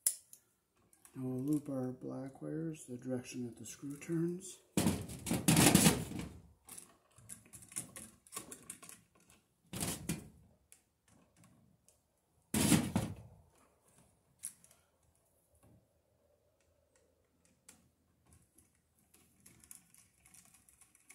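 Metal tools click and scrape against wires.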